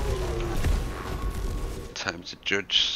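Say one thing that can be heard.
Game effects crackle and zap during a fight.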